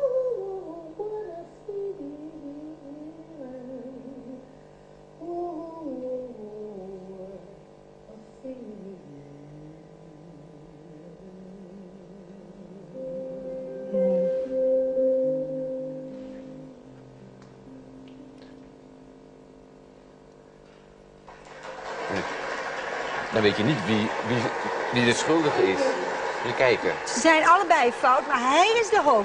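An elderly woman sings slowly and softly through a loudspeaker.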